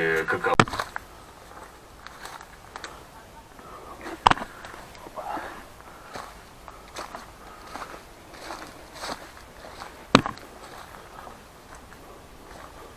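Footsteps rustle through grass and leaves.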